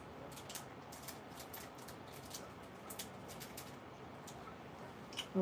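Hands handle plastic toy packaging with light clicks and crinkles.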